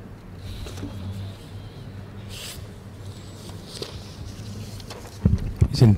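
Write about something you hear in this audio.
Paper rustles as pages are turned.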